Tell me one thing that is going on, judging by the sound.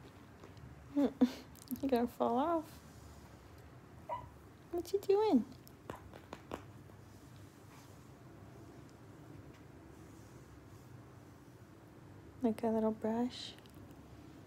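A puppy whines in short high squeals.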